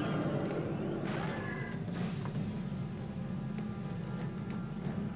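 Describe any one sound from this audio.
Video game sound effects clink and chime.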